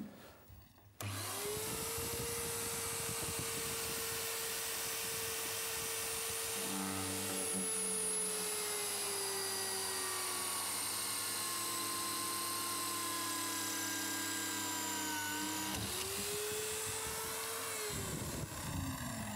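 A drill whines steadily as it bores through metal.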